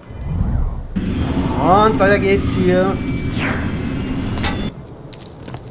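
A magical spell swirls and whooshes with a rising shimmering tone.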